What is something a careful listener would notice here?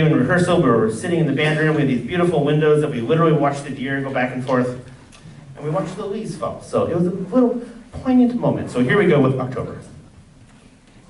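A man speaks to an audience through a microphone in a large echoing hall.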